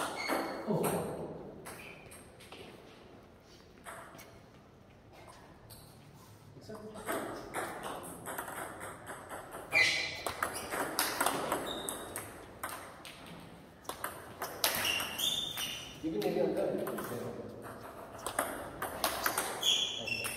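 Table tennis balls click rapidly against paddles and bounce on a table.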